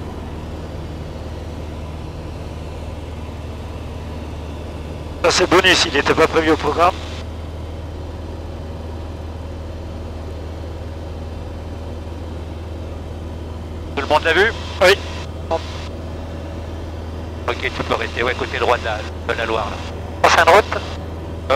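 A small plane's engine drones steadily and loudly from inside the cabin.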